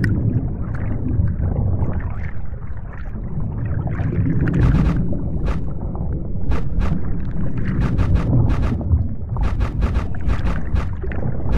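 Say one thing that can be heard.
Deep underwater rumbling drones steadily.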